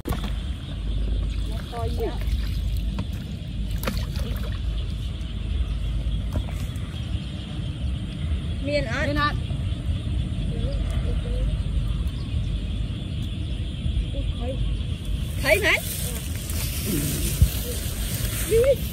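Water splashes as a boy wades through a pond.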